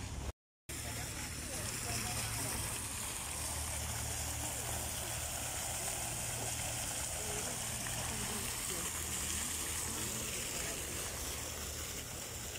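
Fountain water splashes steadily into a pool.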